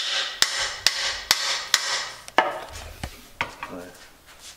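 Wood knocks and creaks as a stick is handled.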